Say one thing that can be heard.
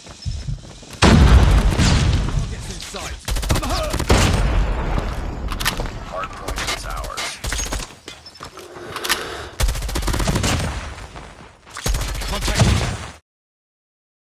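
A gun fires in rapid, loud bursts.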